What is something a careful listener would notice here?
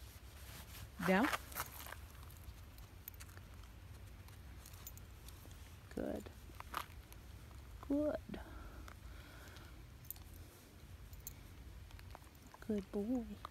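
A woman speaks softly and sweetly close by.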